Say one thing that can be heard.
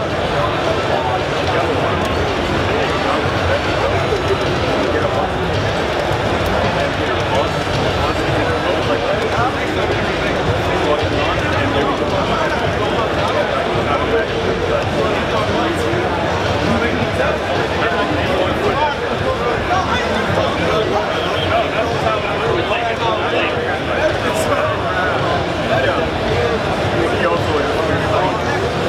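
Slashing and explosive fight sounds play loudly through loudspeakers.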